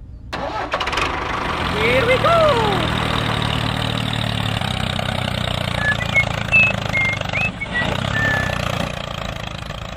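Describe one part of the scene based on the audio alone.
A toy tractor's small motor whirs as it drives along.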